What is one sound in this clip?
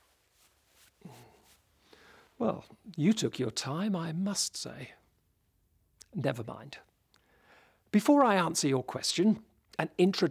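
An elderly man speaks clearly and with expression, close to a microphone.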